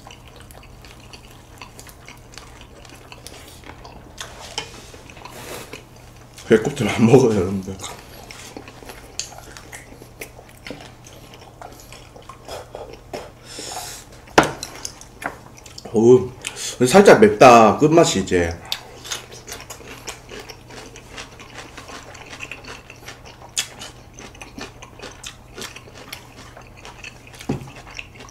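Young men chew and slurp food close to a microphone.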